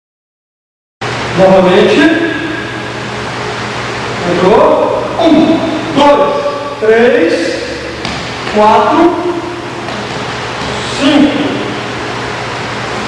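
A man speaks steadily, explaining in short phrases.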